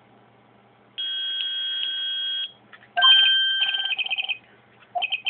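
An electronic beep sounds twice, then holds a long tone.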